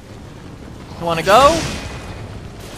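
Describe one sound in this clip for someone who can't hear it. A burst of fiery magic explodes with a loud whoosh.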